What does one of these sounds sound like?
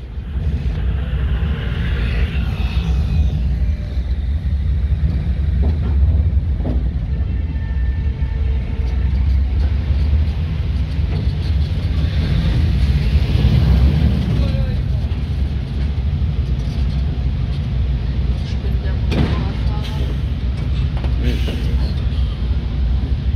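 A vehicle engine rumbles steadily from inside the vehicle.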